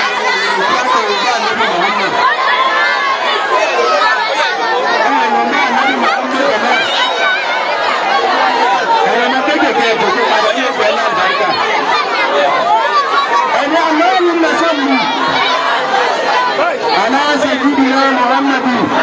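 A large crowd of women and men chatters and shouts loudly close by.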